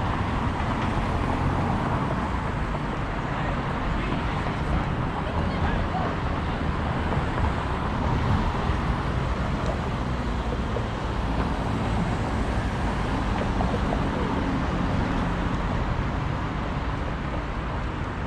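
Cars drive by on the street.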